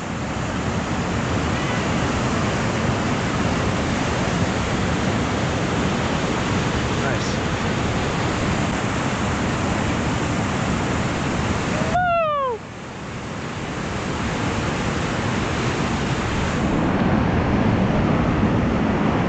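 White water rapids roar loudly and steadily close by, outdoors.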